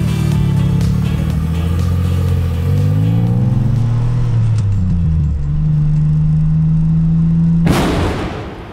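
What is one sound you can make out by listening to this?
A car engine revs loudly, rising in pitch and shifting gears.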